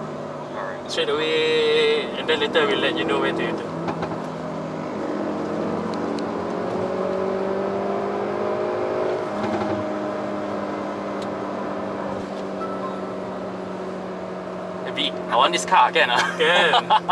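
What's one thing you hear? A man talks with animation close by inside a car.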